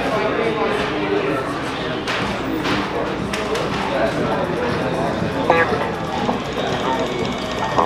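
Music plays through a horn speaker, sounding slightly boxy.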